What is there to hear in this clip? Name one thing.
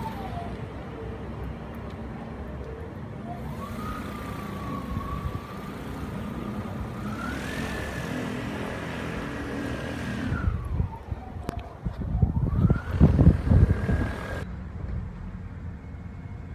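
A small propeller aircraft taxis nearby, its motor whining and rising and falling in pitch.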